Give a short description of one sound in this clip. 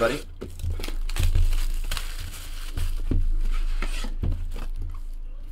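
Plastic wrapping crinkles as hands tear it off a box.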